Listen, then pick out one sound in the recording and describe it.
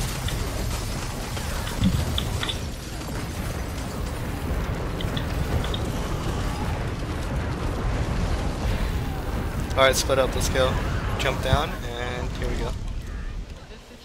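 Fiery spell blasts burst and crackle in quick succession.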